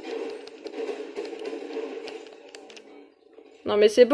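Gunshots from a video game crack through a television speaker.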